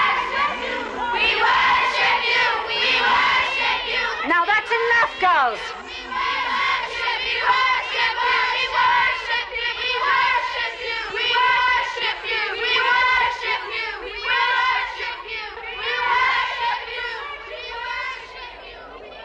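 A crowd of young girls shout and chant in taunting unison close by.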